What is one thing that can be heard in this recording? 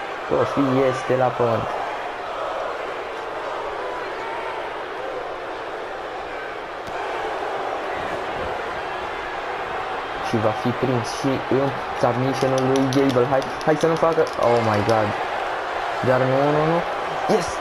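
A crowd cheers and roars steadily in a large arena.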